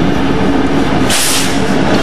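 Diesel freight locomotives roar past at speed.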